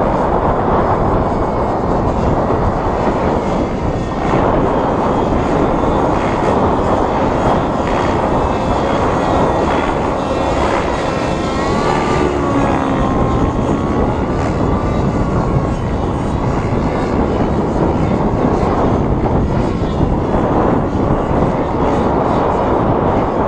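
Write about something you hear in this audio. A nitro-engine radio-controlled helicopter whines in the distance, its pitch rising and falling as it flies.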